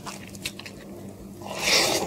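A woman chews a mouthful of rice, close to the microphone.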